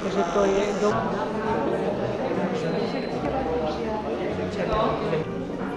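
An elderly woman talks calmly nearby.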